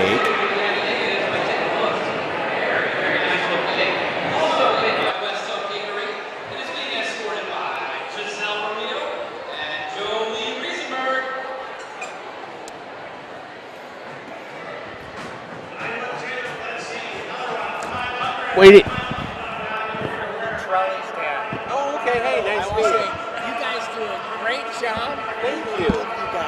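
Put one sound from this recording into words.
A man speaks into a microphone, heard over loudspeakers echoing through a large hall.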